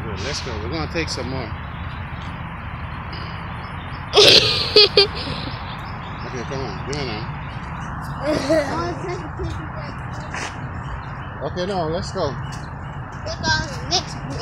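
A man talks with animation close to a phone microphone outdoors.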